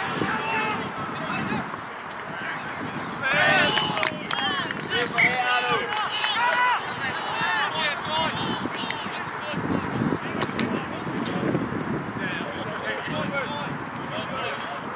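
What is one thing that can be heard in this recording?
Young players shout and call out excitedly across an open field.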